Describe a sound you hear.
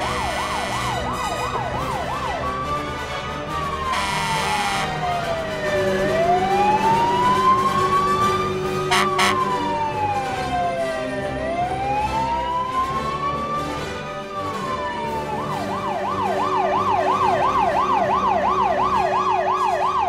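A siren wails, switching between a fast warble and a slow rising and falling wail.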